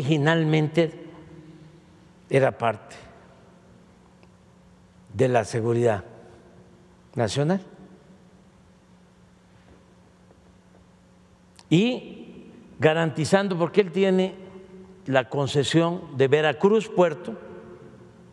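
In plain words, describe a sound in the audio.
An elderly man speaks calmly into a microphone in a large echoing hall, with long pauses.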